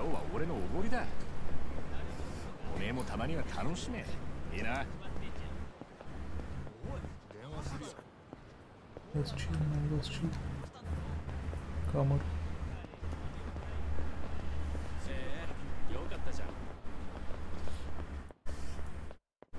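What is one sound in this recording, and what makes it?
Footsteps walk along hard pavement.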